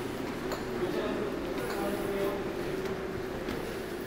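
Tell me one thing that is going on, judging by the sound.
Footsteps thud on stone stairs.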